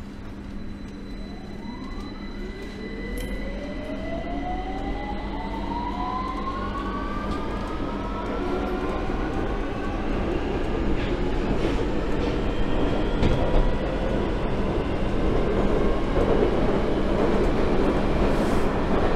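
An underground train starts off with a rising electric whine.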